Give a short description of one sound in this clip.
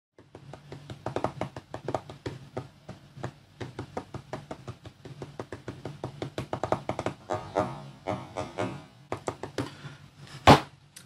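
Fingers tap rapidly on a touchscreen.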